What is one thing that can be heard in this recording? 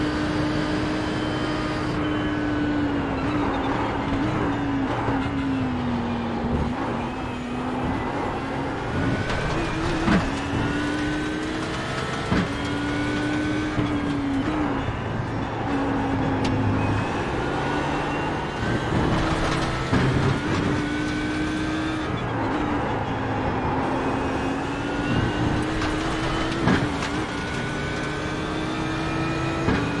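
A race car engine roars steadily, rising and falling in pitch as the car speeds up and brakes.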